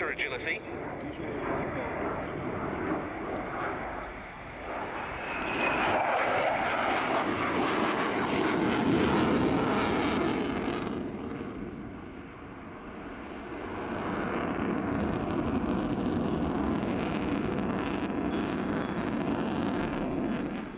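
A jet engine roars overhead, swelling and fading in waves.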